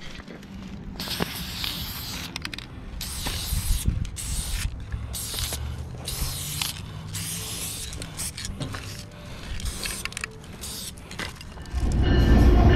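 A spray can hisses in short bursts close by.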